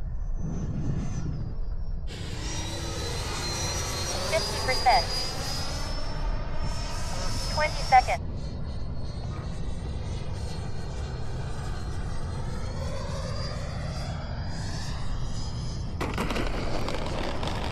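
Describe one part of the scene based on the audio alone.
A small jet engine whines loudly as a model plane flies past, its pitch rising and falling.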